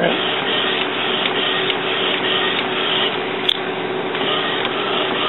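A printer's mechanism clicks now and then.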